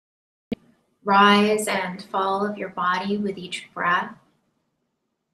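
A woman speaks softly and calmly, close to a microphone.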